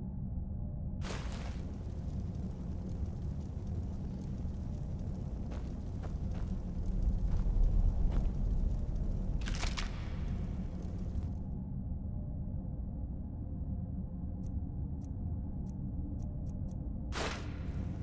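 Magical flames crackle and hiss close by.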